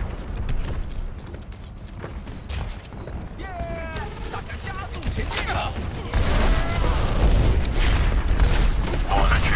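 A young man talks into a microphone close by.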